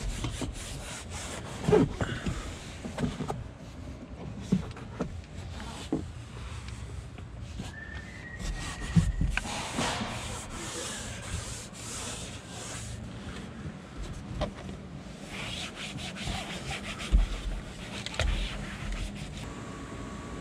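A cloth rubs across a fabric car headliner.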